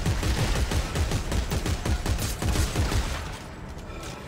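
Rapid gunfire blasts in quick bursts.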